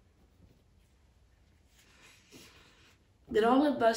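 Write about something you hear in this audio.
A middle-aged woman sniffles and sobs quietly.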